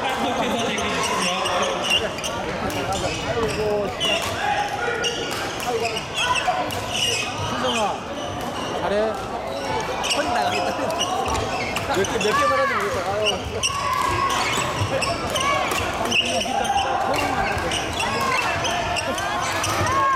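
A crowd of people talks and calls out in a large echoing hall.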